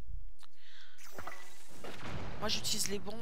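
A bomb explodes with a loud, rumbling blast.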